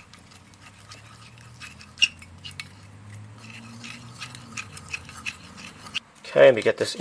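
A plastic spatula stirs a paste in a cup, clicking against the sides.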